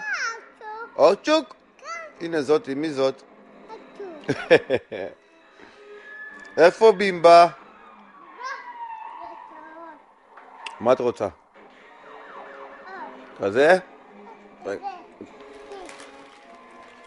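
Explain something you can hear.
A small child babbles and talks excitedly close by.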